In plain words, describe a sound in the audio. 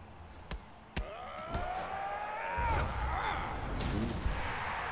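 A crowd cheers and roars in a large arena.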